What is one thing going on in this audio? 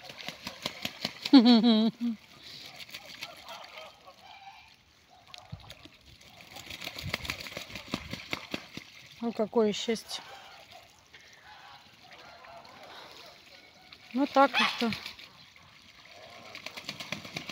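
Ducks splash and paddle in a puddle.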